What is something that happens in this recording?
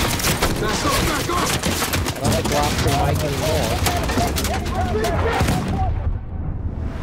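Bullets crack into glass and shatter it.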